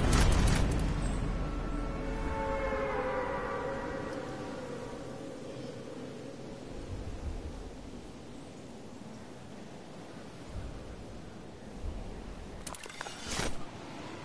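Wind rushes steadily past during a fast fall through the air.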